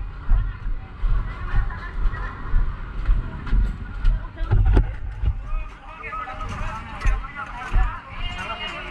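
A crowd of men talk over each other close by.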